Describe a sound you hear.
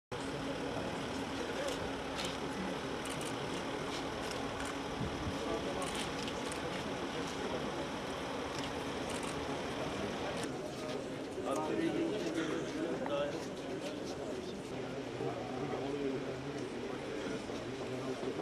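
A crowd of men chatters nearby outdoors.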